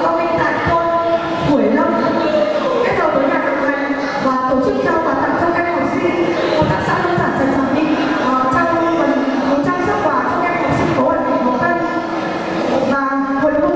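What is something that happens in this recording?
A young woman speaks calmly into a microphone over a loudspeaker.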